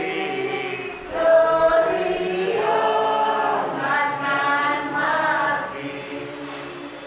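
People sing together in a hall.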